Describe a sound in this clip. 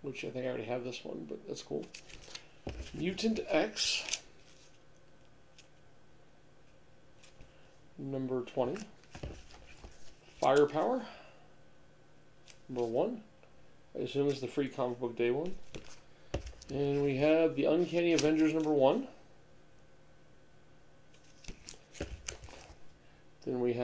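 Paper comic books rustle and slide as a man handles them.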